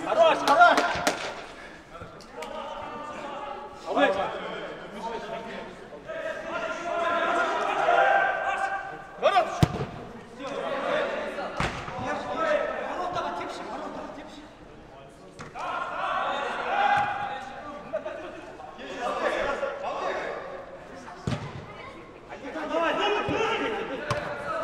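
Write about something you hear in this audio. Young men shout to each other across the pitch.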